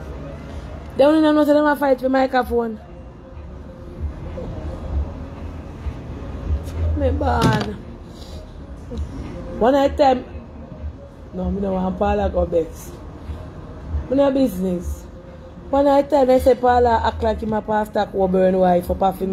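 A woman talks casually and close by, in bursts with pauses.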